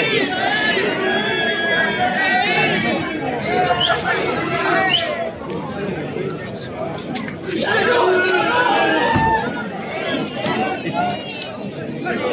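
A crowd of men and women chatters and shouts nearby outdoors.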